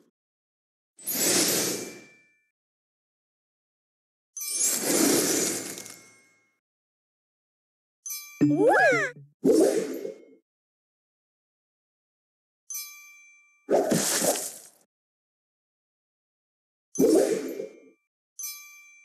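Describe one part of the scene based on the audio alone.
Game pieces pop and burst with bright whooshing effects.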